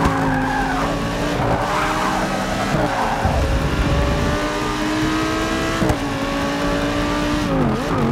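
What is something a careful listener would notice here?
A racing car engine roars loudly, rising in pitch as it accelerates.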